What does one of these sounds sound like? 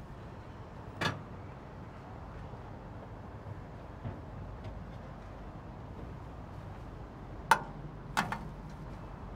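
Metal utensils clink against a tray.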